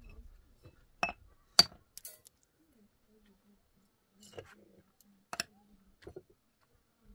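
Stones knock and clack as they are stacked.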